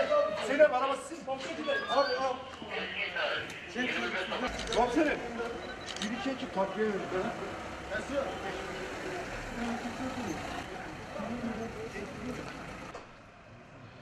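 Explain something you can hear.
Several men talk at once nearby.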